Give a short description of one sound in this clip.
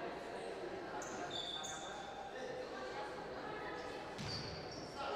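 Sneakers squeak sharply on a court in an echoing hall.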